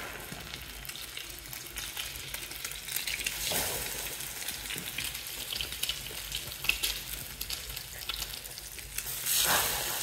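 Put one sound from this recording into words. Pancakes are placed into a frying pan with a soft slap.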